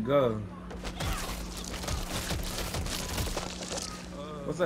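Heavy punches thud against a body in quick succession.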